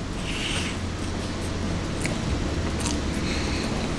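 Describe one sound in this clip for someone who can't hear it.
A man chews food.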